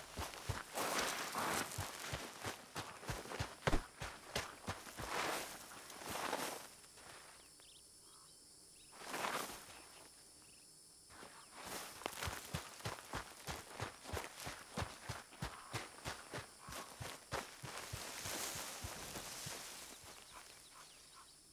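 Footsteps crunch on dry gravelly ground.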